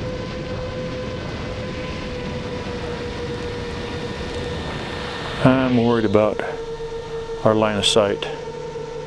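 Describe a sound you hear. A drone's motors whine steadily.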